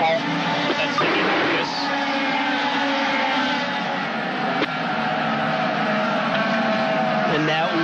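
A race car engine roars loudly at high speed.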